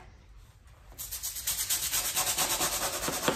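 A stiff brush scrubs a hard floor briskly.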